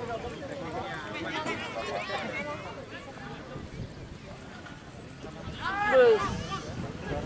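Men in a crowd shout loudly.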